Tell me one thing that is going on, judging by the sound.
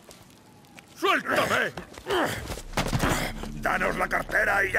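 A man shouts loudly and aggressively.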